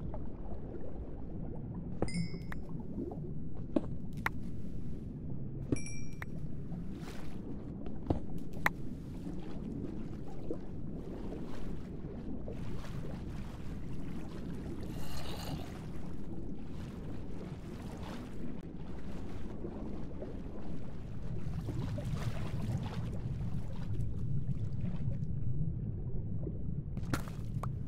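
Muffled underwater swishing goes on throughout.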